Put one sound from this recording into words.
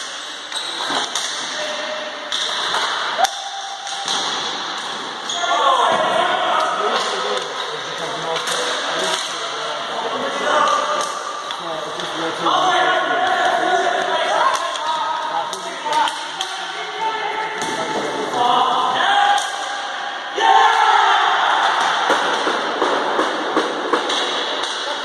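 Hockey sticks clack sharply against the floor and a ball.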